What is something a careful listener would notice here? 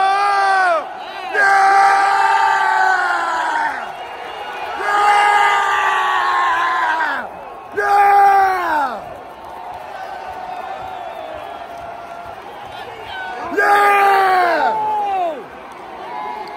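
A huge stadium crowd chants loudly in unison, in long drawn-out bursts.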